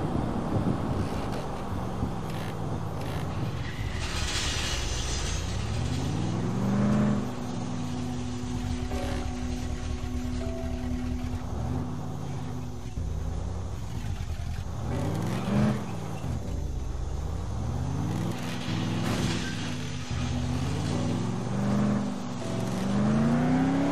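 A car engine revs up and down, rising and falling in pitch again and again.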